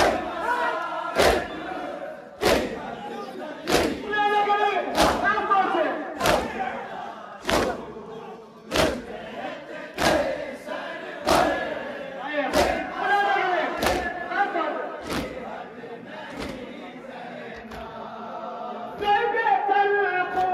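A crowd of men chant and sing together loudly.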